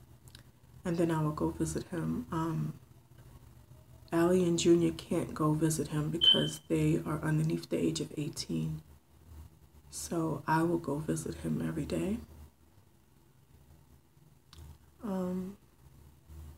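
A woman speaks quietly and emotionally, close to the microphone.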